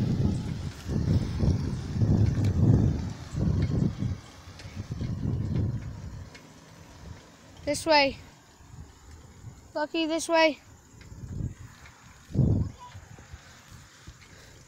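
Bicycle tyres roll over wet pavement.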